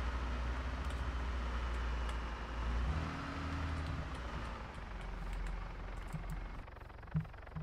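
A van engine rumbles as the van drives.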